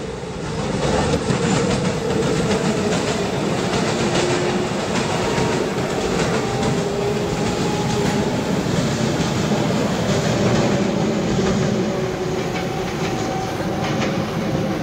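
An electric commuter train runs along the track at speed.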